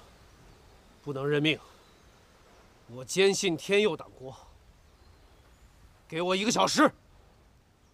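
A middle-aged man speaks in short, pleading bursts.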